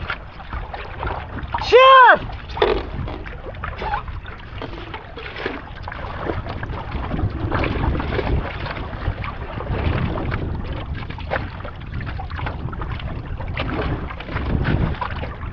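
A paddle splashes rhythmically through water.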